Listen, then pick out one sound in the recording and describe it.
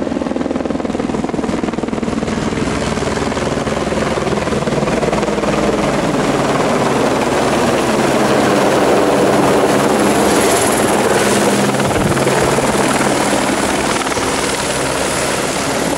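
A helicopter's rotor thuds loudly as it flies in low overhead, growing louder.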